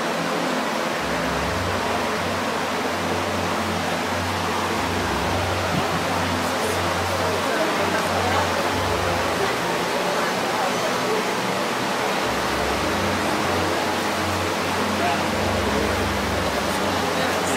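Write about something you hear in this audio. A bull breathes slowly and heavily, close by.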